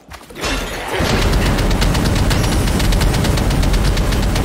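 Fiery blasts roar and crackle loudly.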